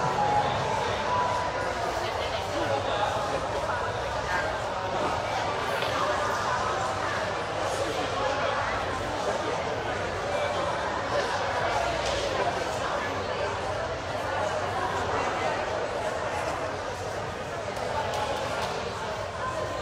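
A man talks in a large, echoing hall.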